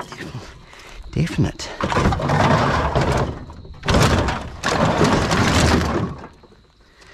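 Plastic bottles and cans rattle and clatter as a hand sorts through them.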